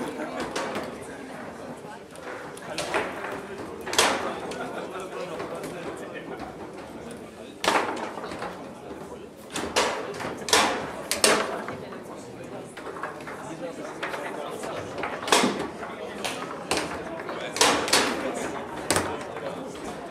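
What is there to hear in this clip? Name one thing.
Foosball rods clatter as players spin and slide them.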